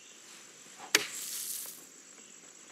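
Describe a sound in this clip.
A golf club splashes a ball out of sand.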